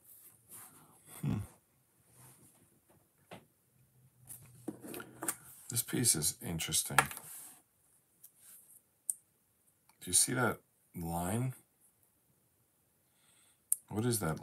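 Jigsaw puzzle pieces click softly as they are pressed into place.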